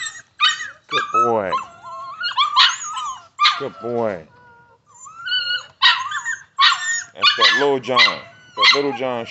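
A dog yelps and barks loudly up close.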